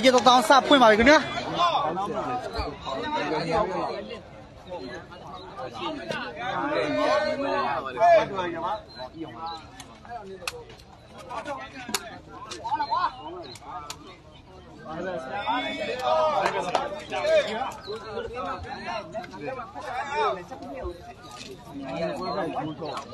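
A crowd of young men and women shouts and cheers close by, outdoors.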